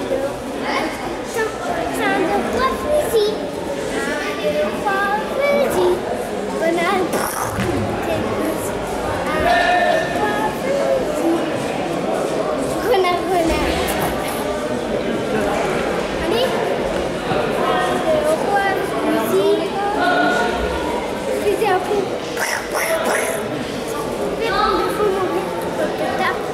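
Many children chatter and call out in a large echoing hall.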